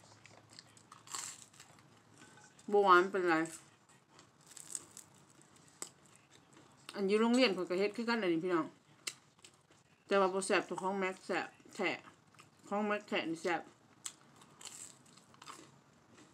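A woman crunches on crispy fried dough.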